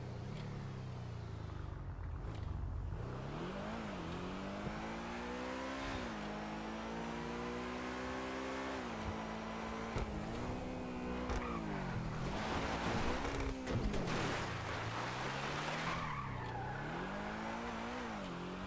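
A sports car engine roars, revving up and dropping as it shifts gears.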